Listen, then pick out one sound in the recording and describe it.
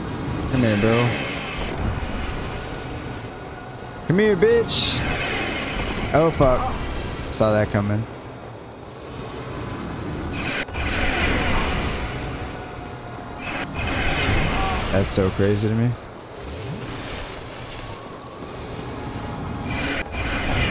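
A sword swishes and strikes repeatedly.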